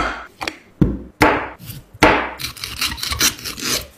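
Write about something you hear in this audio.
A knife chops through vegetables on a cutting board.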